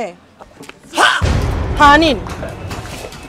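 A woman shouts loudly up close.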